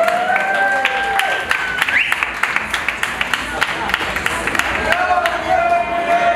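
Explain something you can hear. A crowd claps along in quick, sharp bursts.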